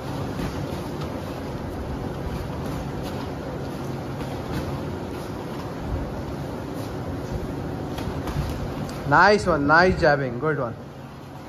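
Boxing gloves thud in quick punches.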